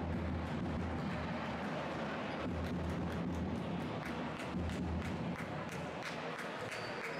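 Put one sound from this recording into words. Young women cheer and shout together.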